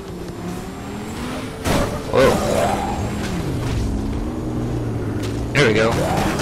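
A sports car engine roars and hums, rising and falling in pitch.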